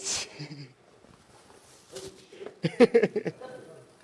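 Men laugh together.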